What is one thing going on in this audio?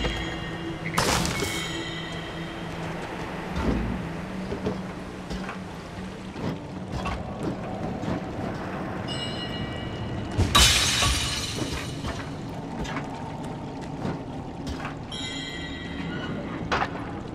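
Bright magical chimes tinkle several times.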